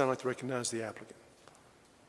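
A man speaks briefly through a microphone in a large room.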